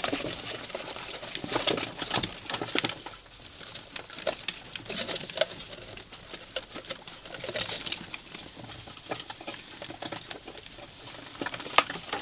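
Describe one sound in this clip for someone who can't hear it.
Small claws scratch and scrabble on cardboard and a hard surface.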